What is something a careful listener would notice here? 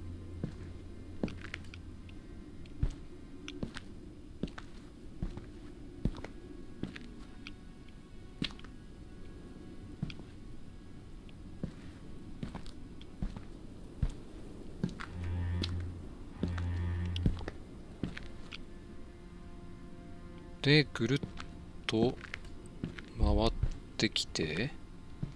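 Footsteps crunch slowly over leaves and gravel outdoors.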